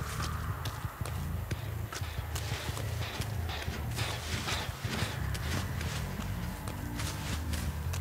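Footsteps rustle through tall reeds.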